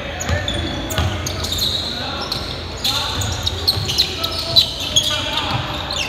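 A basketball bounces on the hardwood floor.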